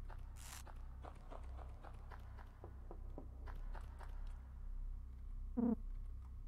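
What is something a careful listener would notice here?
Soft footsteps tap steadily on a hard floor.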